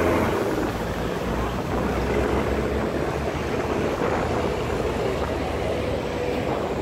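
A boat engine chugs steadily nearby.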